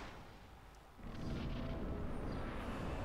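A rushing wall of fog roars loudly.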